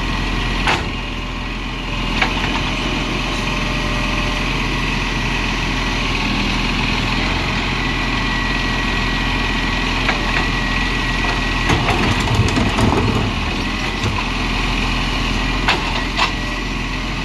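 A bin bangs against a truck's hopper as it is emptied.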